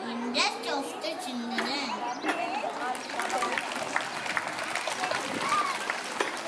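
A crowd of children chatters in the background.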